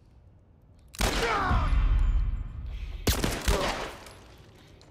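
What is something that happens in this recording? Two loud gunshots ring out and echo in a large hall.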